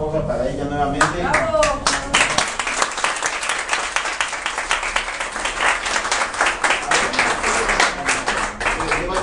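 Hands clap quickly and steadily.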